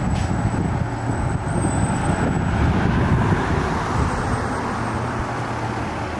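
A car drives past close by.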